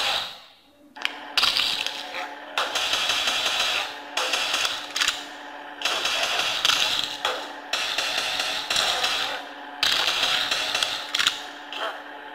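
Cars crash with loud bangs in a phone game.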